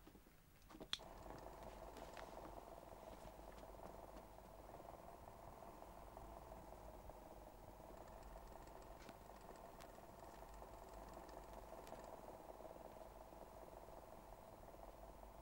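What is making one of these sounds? An electric desk fan whirs.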